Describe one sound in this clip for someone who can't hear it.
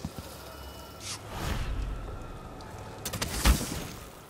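A magical whoosh rushes past and fades.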